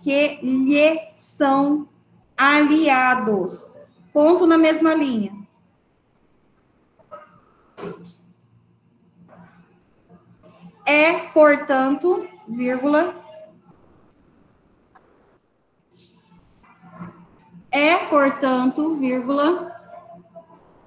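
A woman speaks calmly over an online call, in bursts with pauses.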